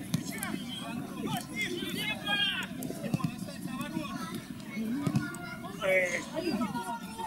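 Men shout to each other across an outdoor field.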